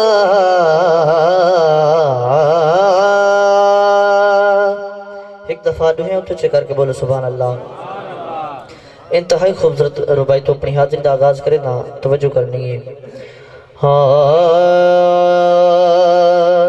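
A young man sings loudly through a microphone, holding long wavering notes.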